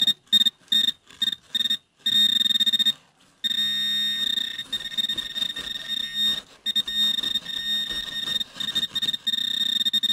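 A plastic trowel scrapes and scratches in dry soil and straw.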